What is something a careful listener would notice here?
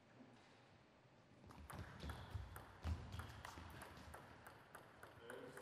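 Shoes squeak and thump on the floor as players move.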